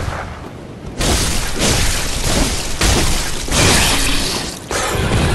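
A blade slashes into flesh with loud, wet, heavy hits.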